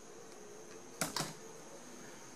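A glue gun clicks.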